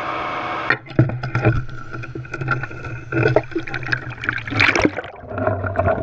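Water splashes as the cage goes under.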